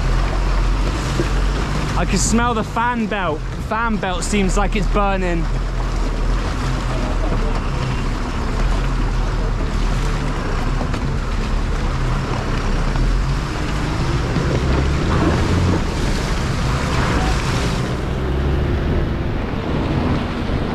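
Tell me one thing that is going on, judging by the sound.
Tyres crunch over gravel and mud.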